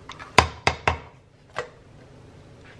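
A spoon scrapes and taps against a plastic tub.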